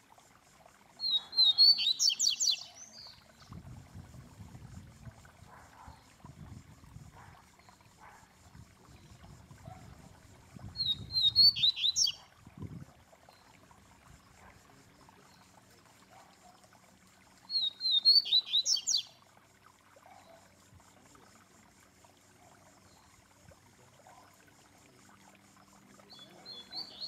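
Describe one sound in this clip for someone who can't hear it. A caged songbird sings short, loud, chirping phrases close by, with long pauses between them.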